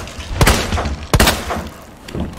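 Pistol shots ring out loudly.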